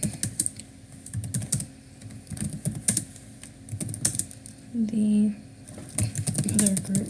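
Keys clatter on a keyboard in quick bursts of typing.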